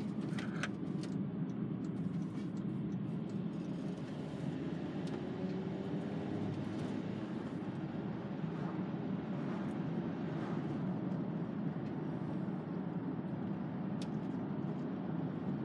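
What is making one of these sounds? A car engine hums steadily with tyre noise on the road.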